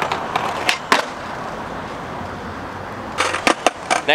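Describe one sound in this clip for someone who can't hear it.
Skateboard wheels roll steadily over pavement.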